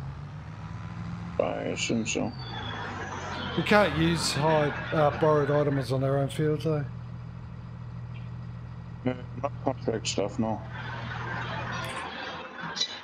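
A tractor engine idles with a low, steady rumble.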